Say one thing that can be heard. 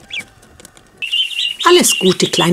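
Ducklings shuffle through dry straw.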